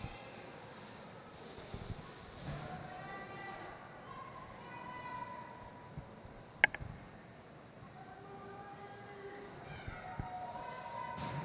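Roller skate wheels roll across a hard floor.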